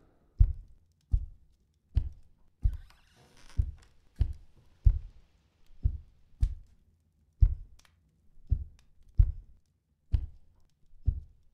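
Heavy footsteps thud steadily on a wooden floor and stairs.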